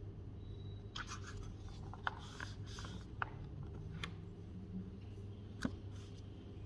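Paper pages rustle as they are handled.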